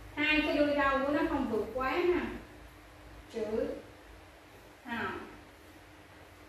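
A woman speaks clearly and slowly, as if teaching, close by.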